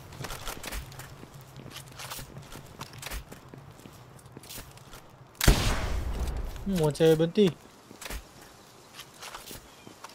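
Gunshots crack one after another.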